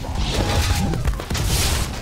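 Magic bursts with a loud whoosh.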